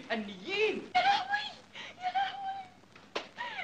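A woman cries out in distress.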